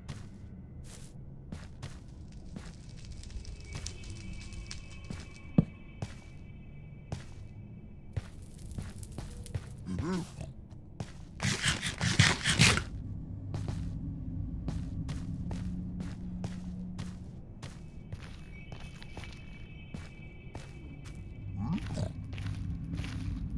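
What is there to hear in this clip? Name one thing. Footsteps tap steadily on hard ground.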